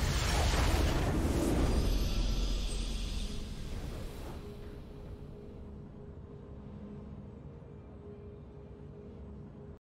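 A triumphant fanfare plays.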